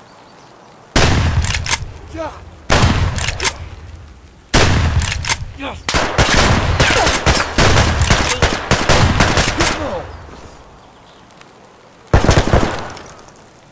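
A shotgun fires loud blasts that echo outdoors.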